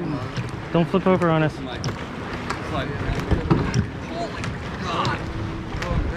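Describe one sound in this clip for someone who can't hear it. A kayak paddle dips and splashes in water.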